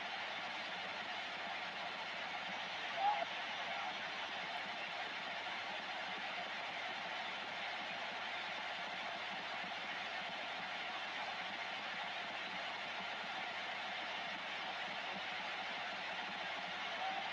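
A radio receiver hisses with steady static noise.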